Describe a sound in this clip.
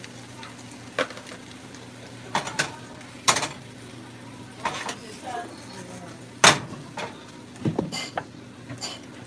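A frying pan clatters and scrapes on an electric stove.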